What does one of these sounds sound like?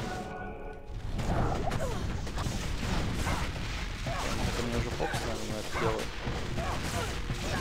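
Fire spells crackle and roar during a fight.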